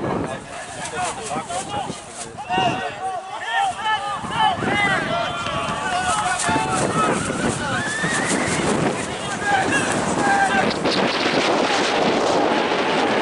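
Young men shout and call out to each other across an open pitch outdoors.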